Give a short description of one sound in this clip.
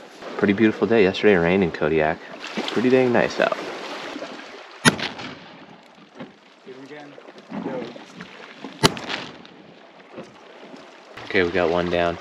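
A young man speaks calmly and close to the microphone.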